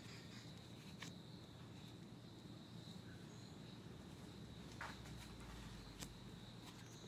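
Cards are laid softly onto a wooden table.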